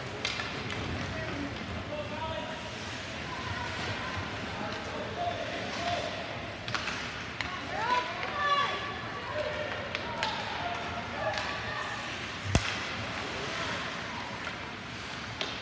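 Young players and spectators shout and call out nearby.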